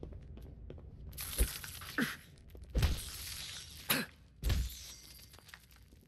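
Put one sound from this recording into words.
Fist punches land with dull thuds.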